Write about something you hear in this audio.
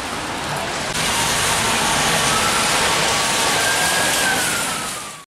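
Car tyres hiss along a wet road.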